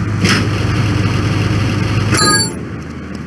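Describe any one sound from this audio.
A car engine idles with a low, steady hum, then cuts off.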